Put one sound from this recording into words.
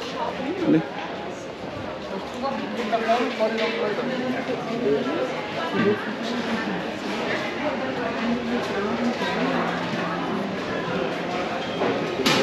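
Women and men chatter nearby in a large echoing hall.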